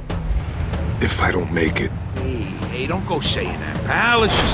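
A man talks with animation from inside a car.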